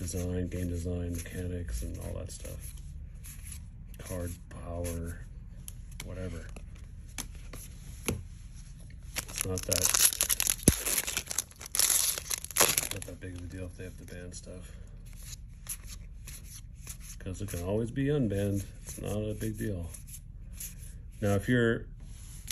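Playing cards rustle and flick as they are shuffled through by hand.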